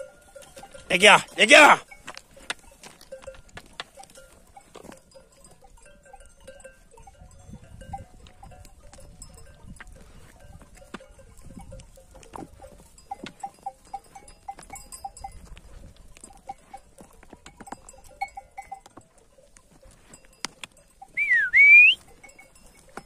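A sheep bleats loudly nearby.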